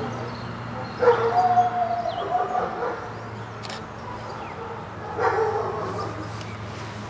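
A woman calls out commands firmly outdoors.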